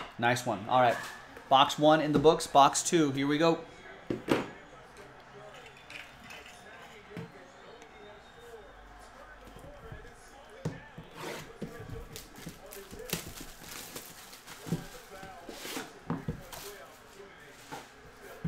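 A cardboard box taps and slides on a table.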